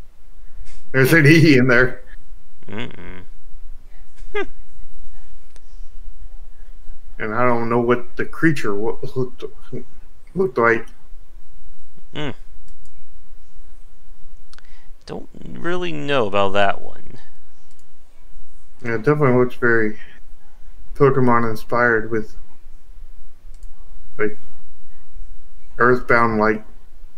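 A man talks casually into a close microphone, in bursts with pauses.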